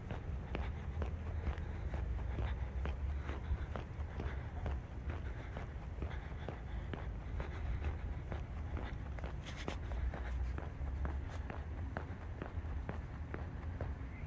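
Footsteps tread steadily on a paved road.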